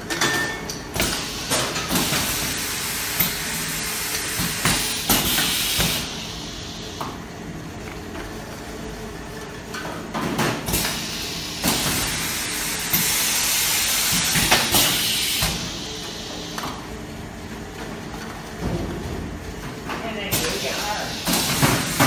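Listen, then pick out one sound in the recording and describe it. Cans clink and rattle against each other on a conveyor.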